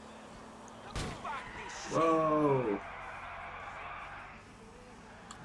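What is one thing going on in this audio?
Car tyres screech while skidding around a turn.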